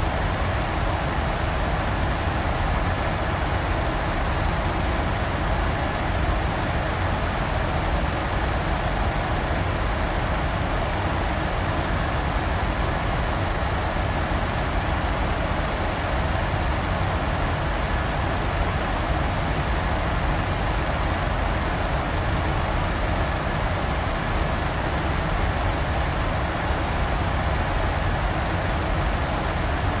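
A jet airliner's engines roar steadily in the cockpit.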